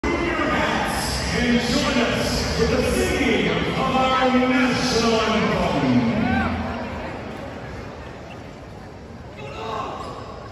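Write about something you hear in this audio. A large crowd cheers and calls out loudly in an echoing hall, then quiets down.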